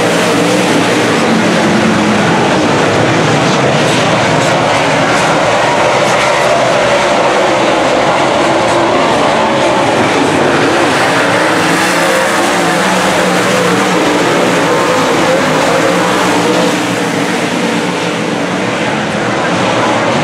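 Race car engines roar loudly as they speed around a dirt track.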